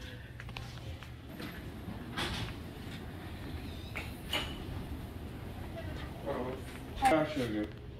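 Stretcher wheels roll along a hard floor.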